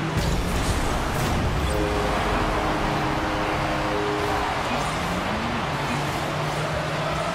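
A crowd in a video game cheers loudly.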